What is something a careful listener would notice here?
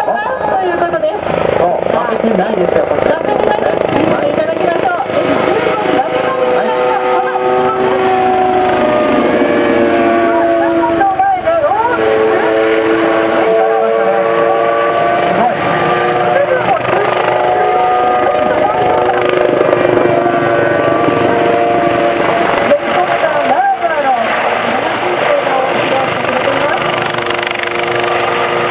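A helicopter roars overhead with rotors thumping and engine whining, its pitch shifting as it swoops past.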